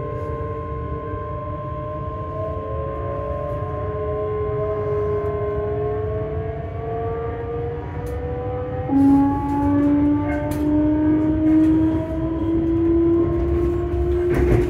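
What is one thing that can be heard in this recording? A train's electric motor whines, rising steadily in pitch as the train speeds up.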